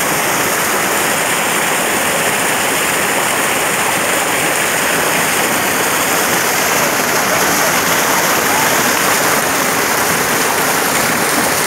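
A waterfall roars steadily close by.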